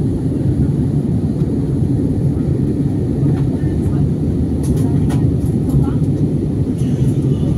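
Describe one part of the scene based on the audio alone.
A jet engine roars steadily with a deep, constant rumble.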